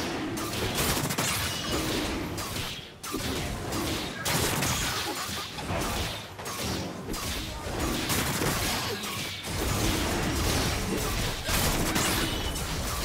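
Spell effects crackle and whoosh in a fast game battle.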